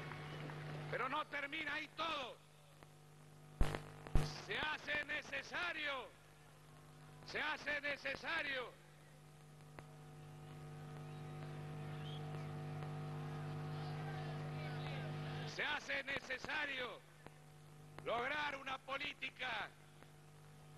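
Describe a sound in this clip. A middle-aged man speaks forcefully into a microphone, his voice echoing through loudspeakers.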